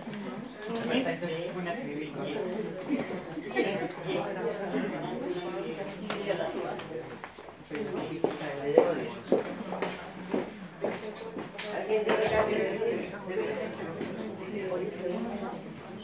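An elderly man talks quietly into a nearby microphone.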